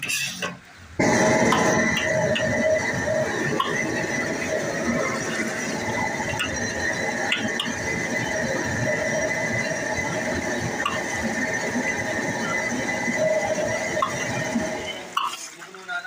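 Sauce sizzles and bubbles loudly in a hot wok.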